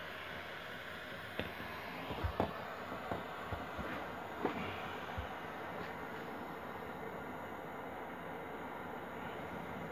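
A propane torch hisses with a steady flame.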